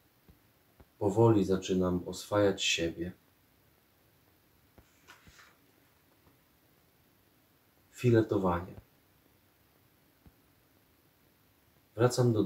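A man reads aloud calmly, close to a microphone, in short phrases with pauses.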